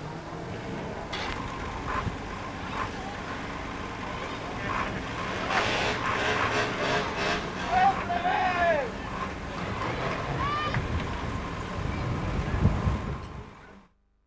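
Car engines rumble and rev close by.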